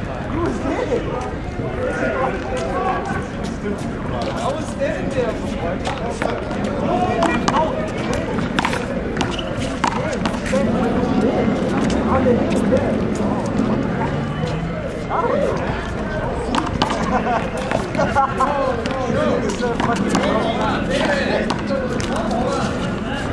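A ball smacks sharply against a wall, again and again.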